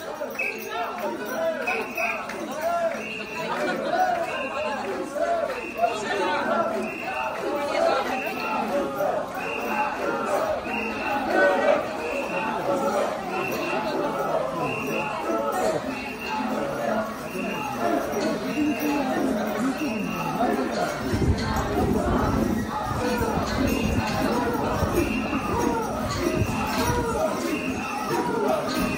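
A crowd of men and women chant together in a steady rhythm outdoors.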